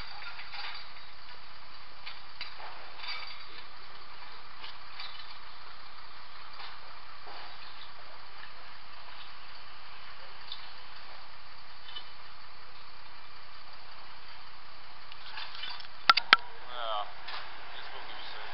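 Metal scaffold frames clank and rattle as they are assembled.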